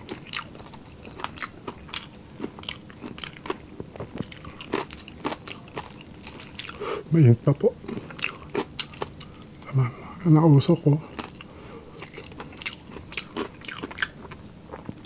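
Crispy fried meat crackles and tears as hands pull it apart close up.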